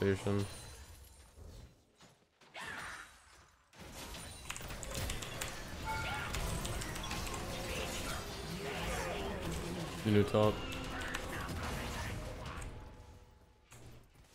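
Game combat effects clash and crackle.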